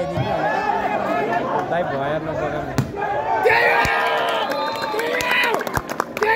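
A large outdoor crowd cheers and shouts.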